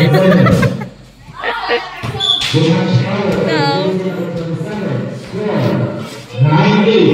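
Young women cheer and shout loudly close by.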